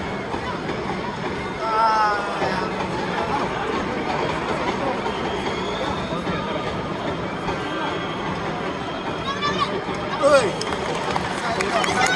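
A stadium crowd murmurs and chatters outdoors.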